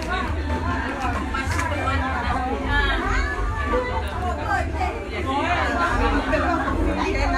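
Several women sing together loudly and close by.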